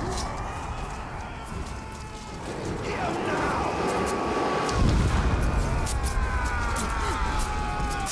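Footsteps thud on dirt.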